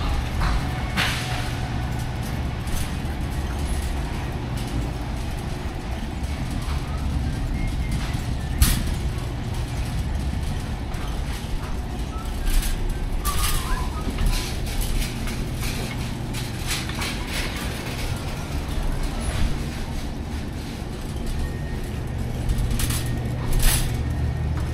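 Cart wheels clatter and click now and then.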